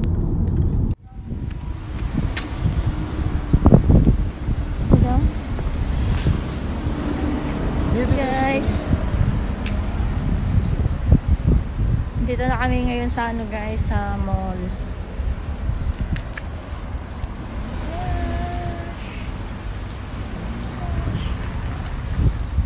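Wind blusters against the microphone outdoors.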